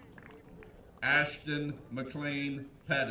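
A man reads out through a loudspeaker outdoors, with a slight echo.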